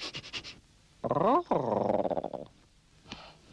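A cat yowls loudly with a sliding pitch.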